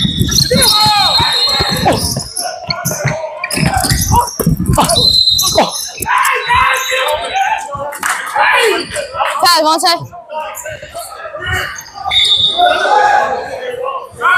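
A referee blows a shrill whistle.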